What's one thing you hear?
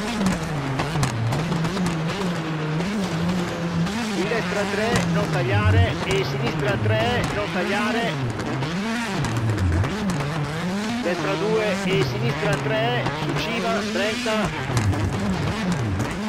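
A rally car engine roars, revving up and down as the car speeds along and shifts gears.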